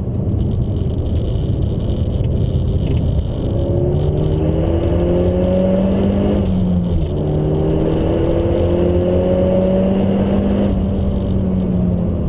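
A car engine roars loudly, its pitch climbing again and again as it speeds up.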